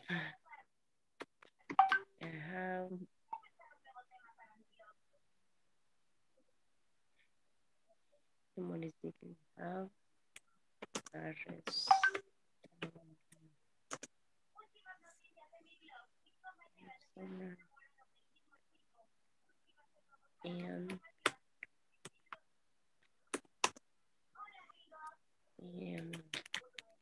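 A young man speaks calmly over an online call, in short phrases with pauses.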